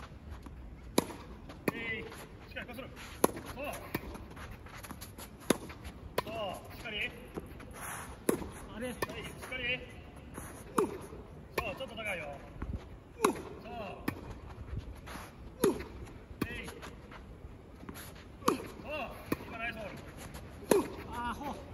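A tennis racket hits a ball with sharp pops at a steady pace.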